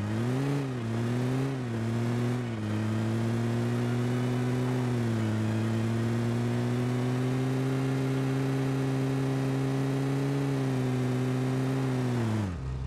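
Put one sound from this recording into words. A game vehicle's engine drones steadily, rising and falling in pitch as it shifts.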